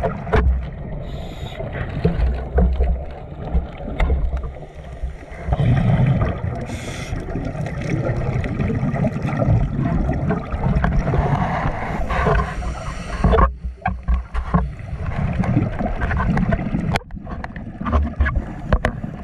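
Water rumbles and swirls, heard muffled from underwater.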